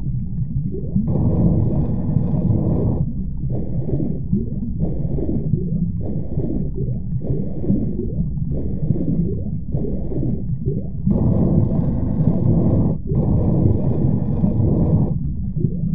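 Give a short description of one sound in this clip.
Water swishes in rhythmic swimming strokes underwater.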